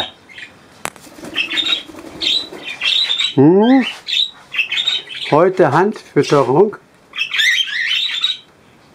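Small parrots chirp and whistle close by.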